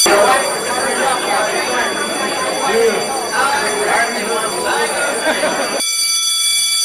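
A crowd of young people chatters in an echoing hallway.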